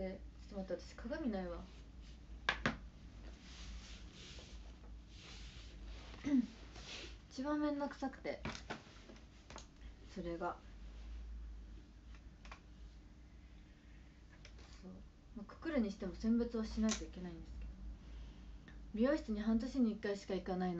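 A young woman talks casually and close by, with pauses.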